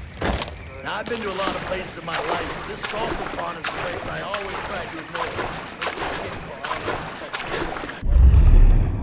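Water splashes as a swimmer paddles with the arms.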